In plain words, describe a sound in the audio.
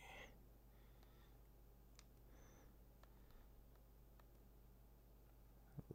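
Short electronic menu blips sound as a selection changes.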